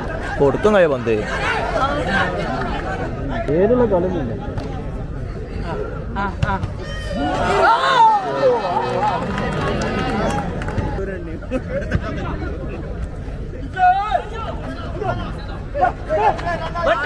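A large crowd of men cheers and shouts outdoors.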